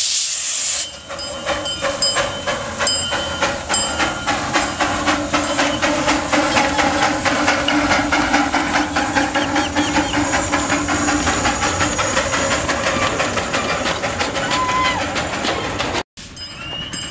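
A small steam locomotive chuffs rapidly as it approaches and passes close by.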